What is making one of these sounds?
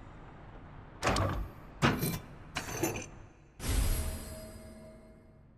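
A heavy mechanism clanks and unlocks with a thud.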